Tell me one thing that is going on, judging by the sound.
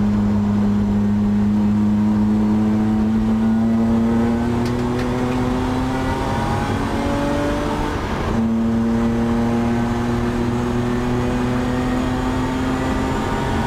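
A race car engine roars loudly from inside the cabin, its pitch climbing steadily, dropping briefly for a gear change, then climbing again.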